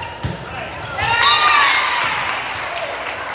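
Young women cheer loudly.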